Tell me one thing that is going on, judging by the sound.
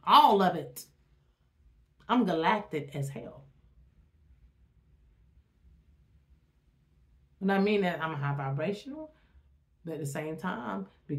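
A woman speaks with animation, close to the microphone, in short bursts with pauses.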